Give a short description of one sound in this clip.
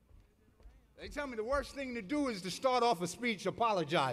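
A second man speaks loudly with animation into a microphone over a loudspeaker.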